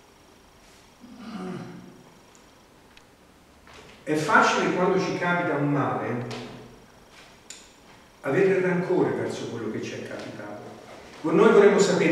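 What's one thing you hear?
A man speaks calmly through a microphone, with pauses, in a room with some echo.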